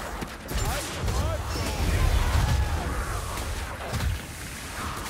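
Fire roars in loud bursts of flame.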